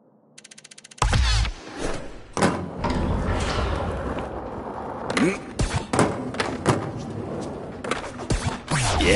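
Skateboard wheels roll and clatter on a ramp.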